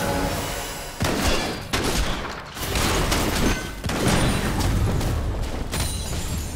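Characters' weapons clash with sharp hits.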